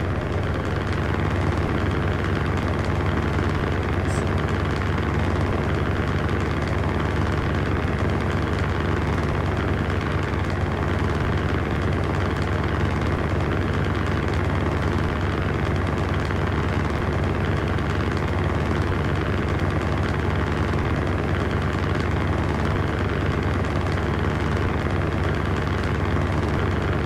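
Tyres roll on a road with a steady roar.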